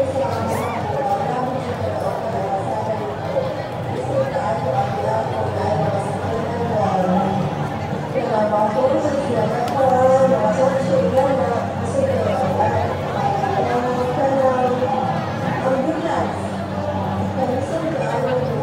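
A large crowd chatters and shouts loudly outdoors.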